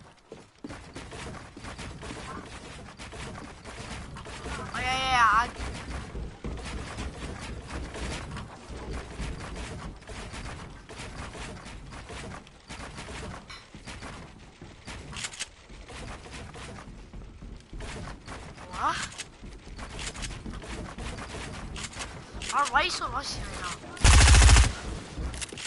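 Building pieces clack rapidly into place in a video game.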